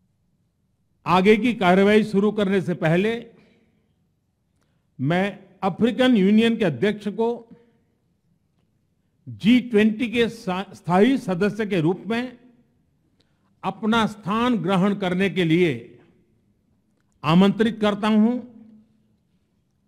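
An elderly man speaks calmly into a microphone in phrases with pauses.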